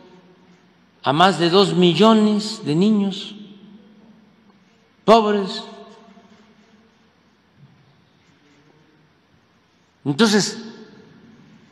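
An elderly man speaks into a microphone in short, emphatic bursts.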